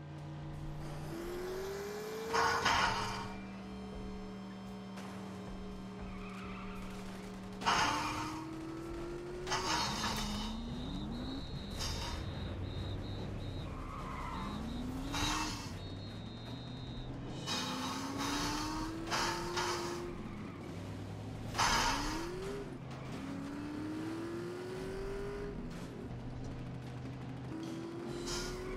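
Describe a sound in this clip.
A racing car engine revs up and down through gear changes.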